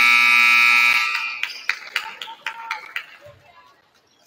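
A volleyball bounces on a hard gym floor.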